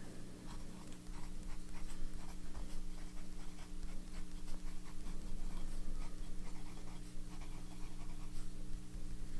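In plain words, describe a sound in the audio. A pen nib scratches softly across paper.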